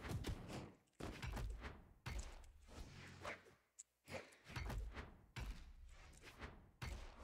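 Cartoon fighters land punchy, whooshing hits in quick bursts.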